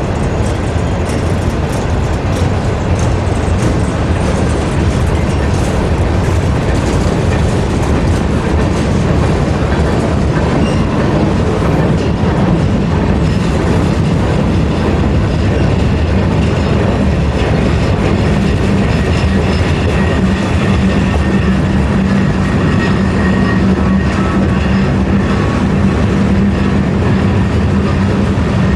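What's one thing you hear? A long freight train rumbles past close by.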